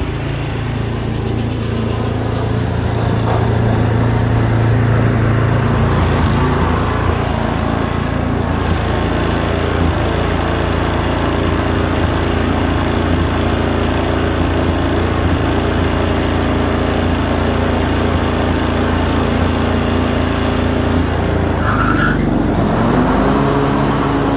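A lawn mower engine runs with a steady, loud drone outdoors.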